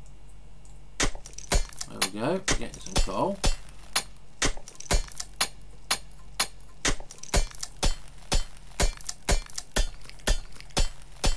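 A pickaxe chips at stone in quick, steady knocks.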